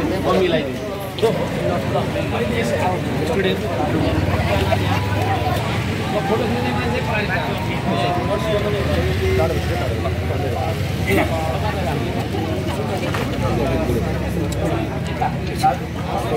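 A crowd of men and women chatter close by, outdoors.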